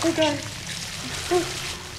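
A young woman cries out nearby.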